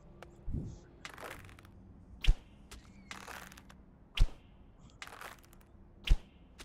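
An arrow whooshes through the air.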